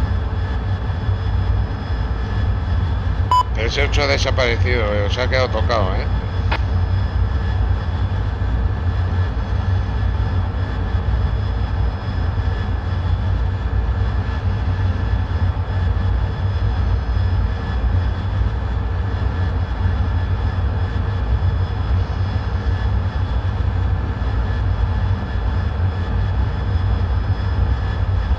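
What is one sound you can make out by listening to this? A jet engine rumbles steadily.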